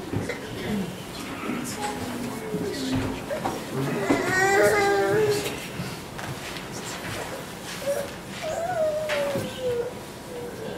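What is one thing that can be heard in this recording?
Men and women in an audience chatter quietly in a room with a slight echo.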